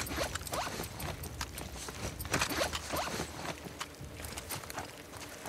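Footsteps shuffle through grass and leaves.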